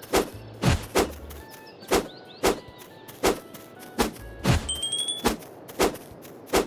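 A sword swishes and strikes again and again in quick, regular blows.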